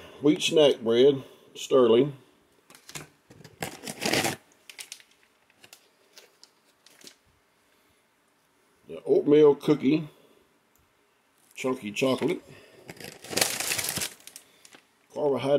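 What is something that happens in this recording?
A plastic food pouch crinkles as it is handled.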